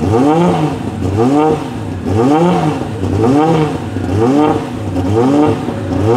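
A racing car engine idles loudly close by, blipping up and down in repeated revs.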